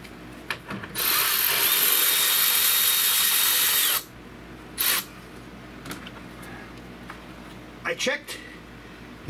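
A power ratchet whirs in short bursts.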